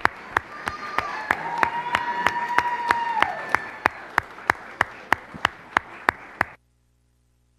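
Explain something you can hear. An audience claps and cheers in a large room.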